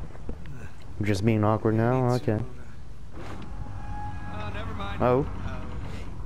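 A young woman talks calmly to a man nearby.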